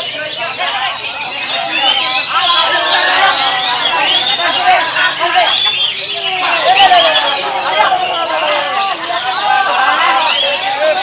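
A caged songbird sings loud, rapid, twittering phrases close by.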